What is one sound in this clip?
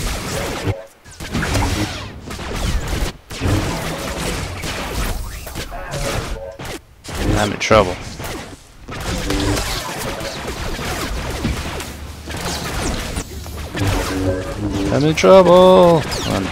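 Lightsabers hum and clash in a fight.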